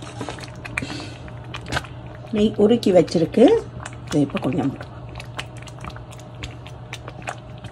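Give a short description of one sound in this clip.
A thick mixture bubbles and pops in a pot.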